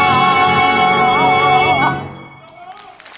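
A woman sings loudly with a wavering voice.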